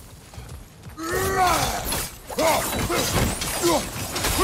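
Ice shatters and cracks.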